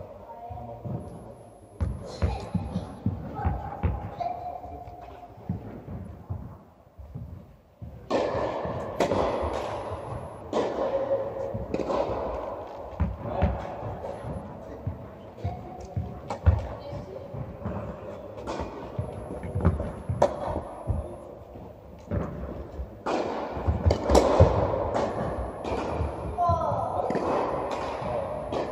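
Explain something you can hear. Tennis balls bounce on the court.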